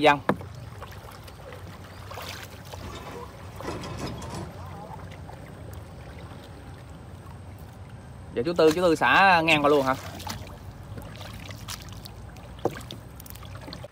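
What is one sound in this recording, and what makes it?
A wet fishing net splashes and drips as it is pulled from the water.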